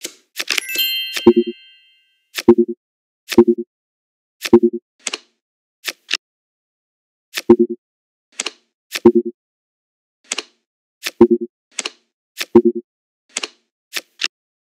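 Game cards snap into place with short, crisp clicks.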